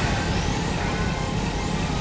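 An energy beam blasts with a loud rush.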